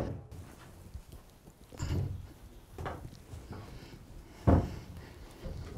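Loose cotton thumps and rustles softly as it is tossed.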